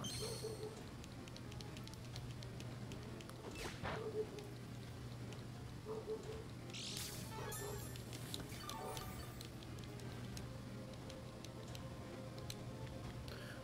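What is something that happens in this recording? Calm electronic game music plays steadily.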